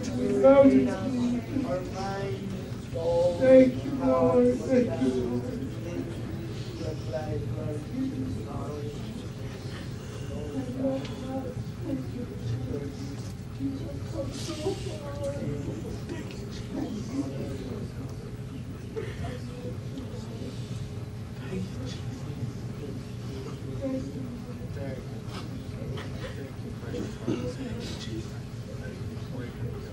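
A group of people murmur prayers softly in a room.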